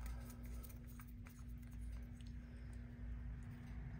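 A plastic cap clicks and twists off a small tube.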